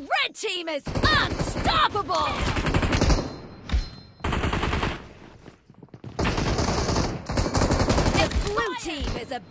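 A rifle fires in rapid, rattling bursts.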